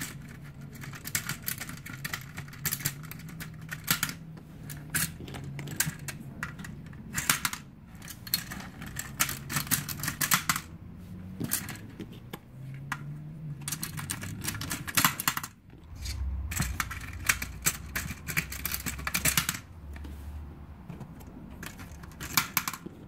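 Plastic game discs click and clatter as they drop into a plastic frame.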